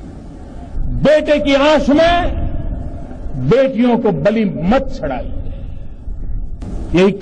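An older man speaks forcefully into a microphone, heard through loudspeakers.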